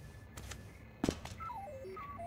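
A dull thud sounds as a message box opens.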